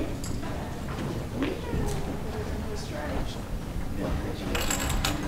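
A crowd murmurs and chatters quietly in a large echoing hall.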